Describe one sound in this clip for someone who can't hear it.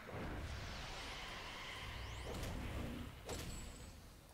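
Fighters clash with whooshing blows and magic effects.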